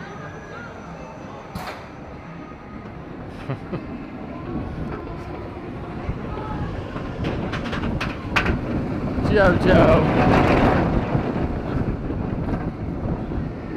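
A roller coaster train rumbles and rattles loudly along its track.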